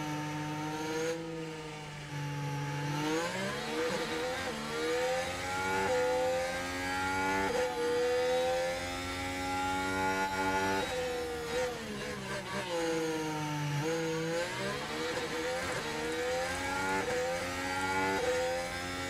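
A racing car engine roars, its pitch rising and falling as it changes gear.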